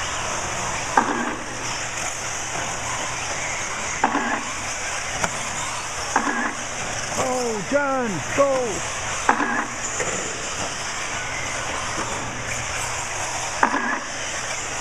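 Toy cars knock against track barriers now and then.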